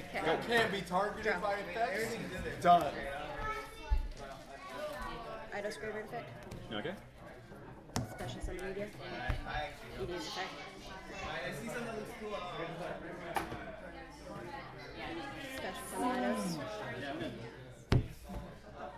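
Playing cards tap and slide onto a table.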